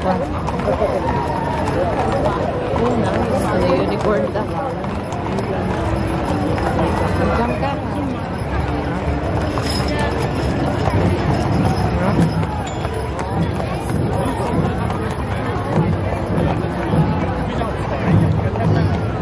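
A large outdoor crowd chatters and murmurs.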